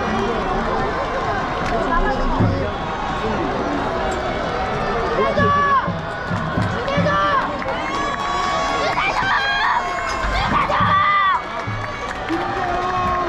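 A large stadium crowd chants and cheers loudly in an open, echoing space.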